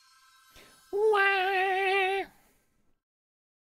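A short game jingle plays as a role is revealed.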